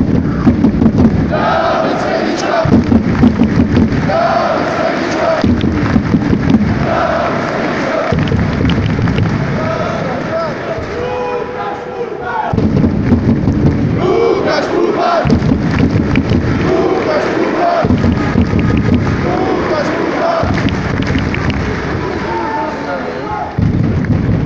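A large crowd claps and cheers rhythmically in a big echoing arena.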